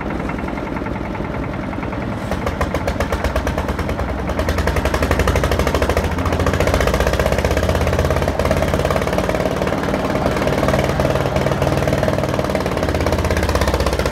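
A concrete mixer drum rumbles as it turns.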